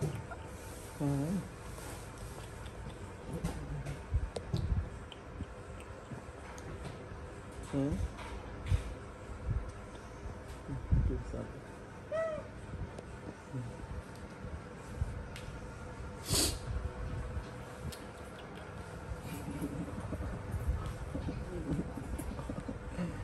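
A baby macaque squeals close by.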